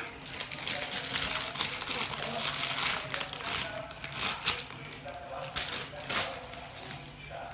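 A plastic snack bag crinkles and rustles in small hands.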